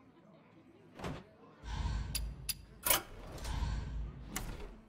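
Game menu sounds click and whoosh.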